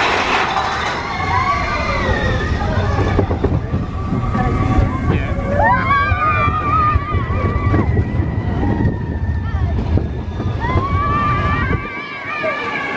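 A roller coaster rattles and roars along its track.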